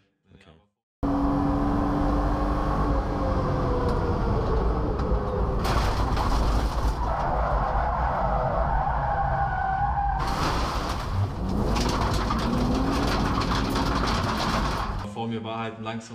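A race car engine roars loudly and revs up and down.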